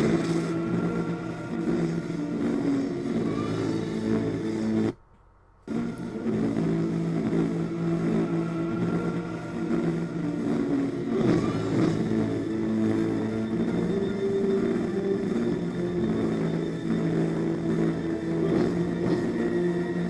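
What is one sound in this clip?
Low, steady game music plays with a brief cut to silence.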